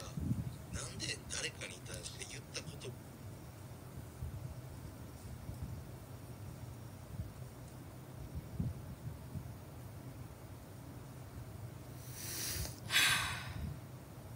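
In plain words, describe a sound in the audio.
A young woman makes soft mouth sounds close by.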